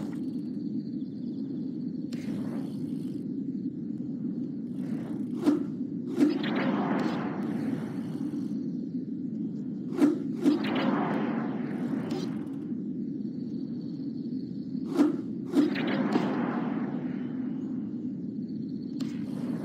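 Bicycle tyres roll over a dirt trail.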